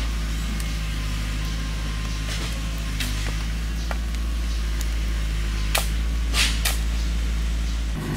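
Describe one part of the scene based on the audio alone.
A hoe thuds into hard soil.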